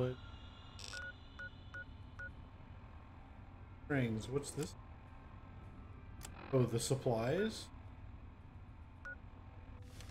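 A handheld device gives short soft beeps as its menu is clicked through.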